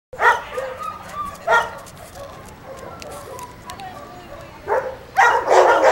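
A dog barks loudly several times nearby.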